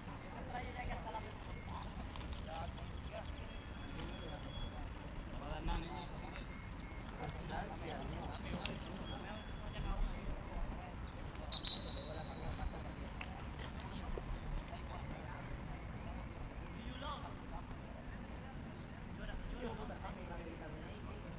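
Players shout to each other across an open outdoor field, far off.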